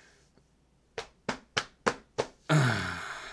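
A young man laughs in short bursts close to a microphone.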